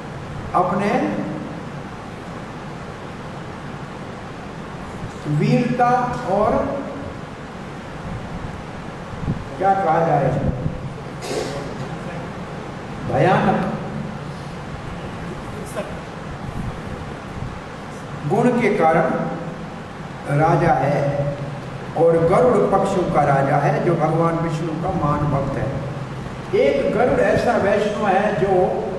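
An elderly man sings slowly in phrases into a microphone, with pauses between them.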